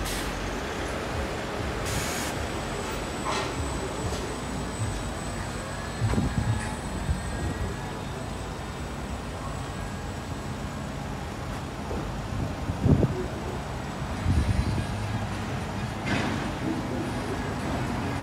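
A bus engine rumbles as the bus pulls away from the stop.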